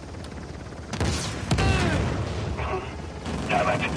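A helicopter explodes with a loud boom.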